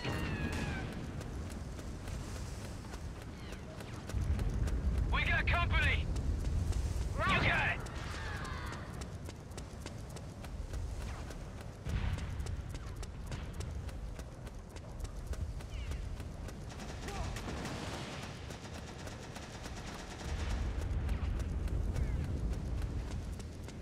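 Boots patter quickly on hard ground as a soldier runs.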